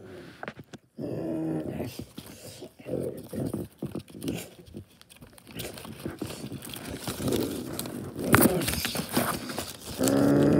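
Cloth rustles and flaps close by.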